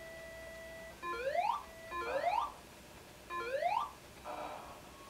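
A video game plays rising chirping sound effects over and over.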